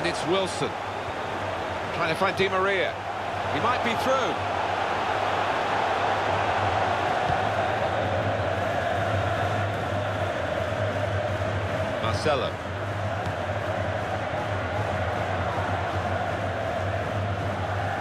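A large crowd roars steadily.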